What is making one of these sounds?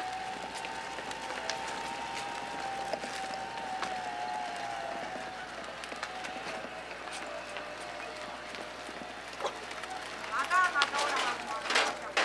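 A small electric car hums as it drives slowly ahead.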